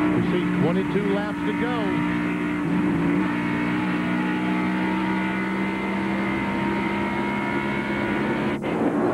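Wind rushes past a fast-moving car.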